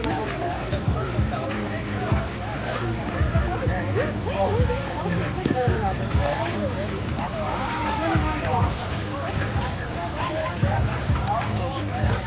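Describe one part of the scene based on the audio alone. Several men talk and call out nearby outdoors.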